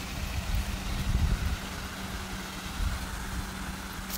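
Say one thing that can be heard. A fountain splashes steadily.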